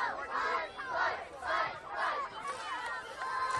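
Young men call out to each other in a huddle outdoors.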